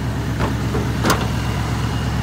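A vehicle's hood latch clunks open.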